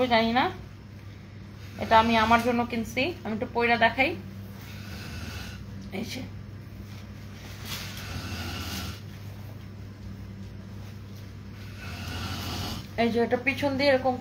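Fabric rustles as a dress is pulled on and adjusted.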